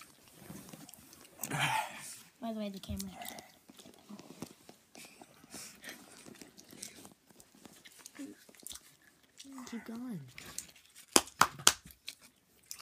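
A candy wrapper crinkles in a boy's hands.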